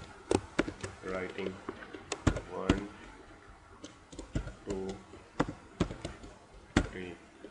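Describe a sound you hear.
A young man speaks calmly and close to a microphone, in short pauses.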